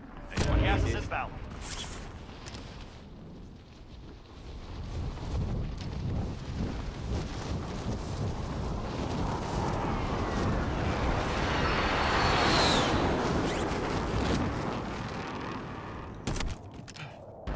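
Wind roars loudly during a fast freefall and grows louder, then cuts off.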